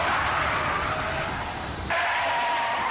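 A man shouts in panic.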